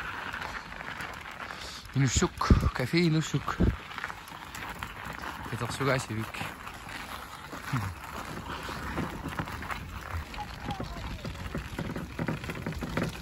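Footsteps crunch on packed snow.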